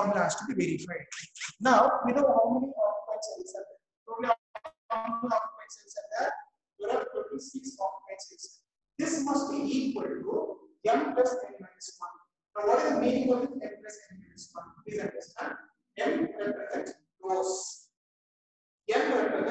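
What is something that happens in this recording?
A man explains calmly, lecturing close by.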